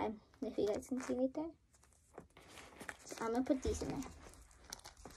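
A young girl sings close by.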